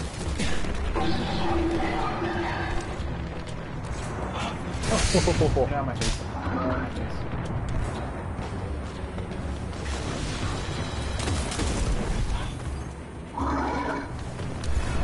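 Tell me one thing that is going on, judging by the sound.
Energy guns fire in quick bursts.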